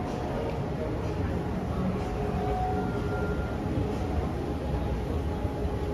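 An escalator hums and rumbles steadily nearby.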